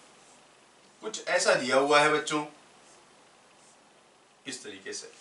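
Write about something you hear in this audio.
A man speaks calmly and clearly, as if teaching.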